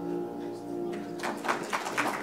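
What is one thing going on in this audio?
A piano plays a sustained chord.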